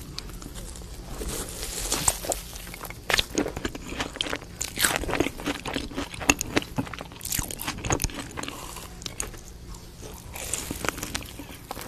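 A woman bites into a crunchy coated cheese stick close to a microphone.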